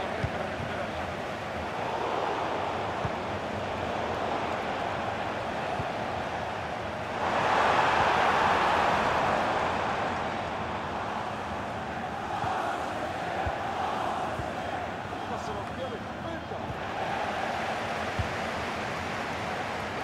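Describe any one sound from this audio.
A stadium crowd roars steadily, swelling louder for a few seconds.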